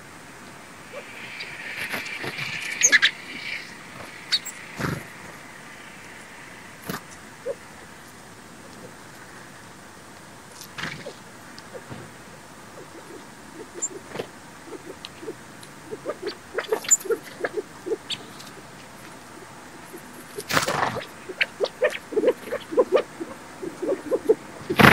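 Small birds chirp and twitter close by.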